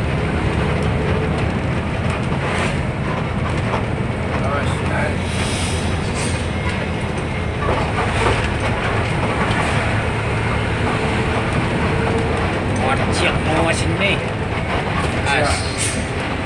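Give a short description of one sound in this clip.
Wind buffets loudly against the vehicle.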